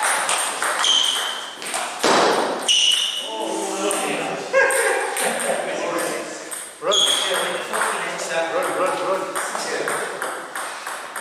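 A table tennis ball clicks off paddles and the table in an echoing hall.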